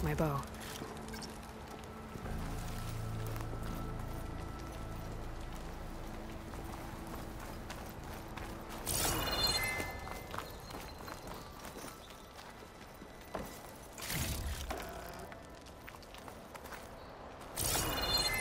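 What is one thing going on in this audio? Footsteps patter on dirt and stone.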